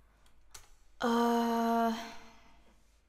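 A young woman sings close to a microphone.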